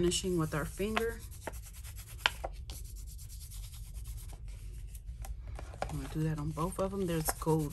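Stiff paper cards rustle and tap as they are handled.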